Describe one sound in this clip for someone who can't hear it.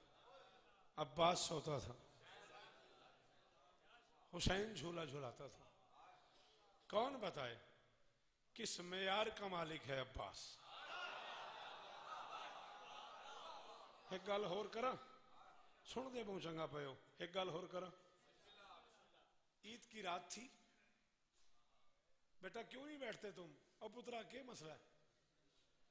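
A man speaks forcefully in short bursts through a microphone and loudspeakers, with pauses between phrases.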